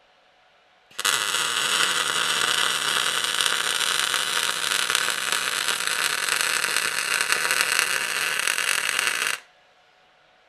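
A welder crackles and buzzes steadily in a long burst.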